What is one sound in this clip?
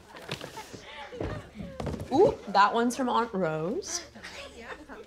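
A young boy laughs and shouts excitedly.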